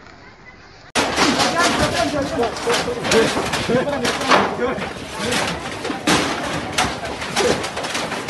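A crowd of men and women shout and talk excitedly nearby.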